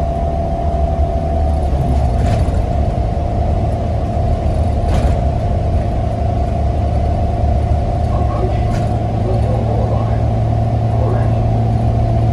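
A bus engine hums and drones steadily while driving.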